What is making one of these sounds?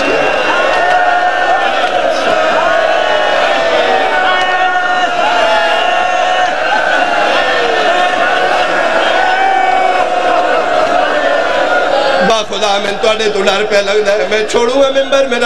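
A large crowd of men chants and shouts loudly together.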